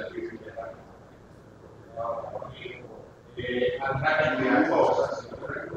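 A woman speaks calmly to a group.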